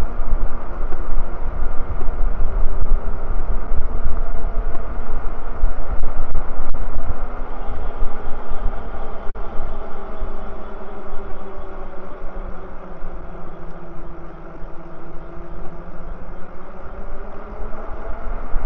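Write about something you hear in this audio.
Bicycle tyres hum on smooth pavement.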